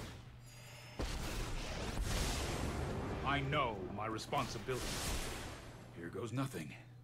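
Game sound effects whoosh and chime.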